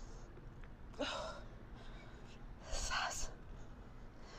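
A young woman exhales sharply with each lunge.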